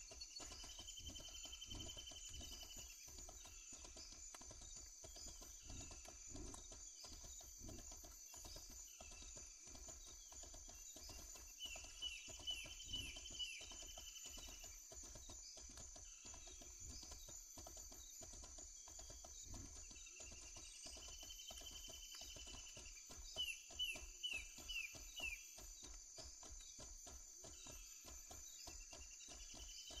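A horse's hooves thud steadily on the ground at a gallop.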